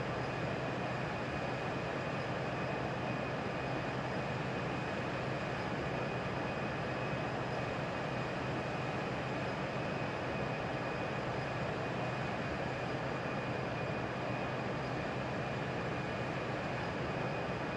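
Jet engines roar in a steady drone.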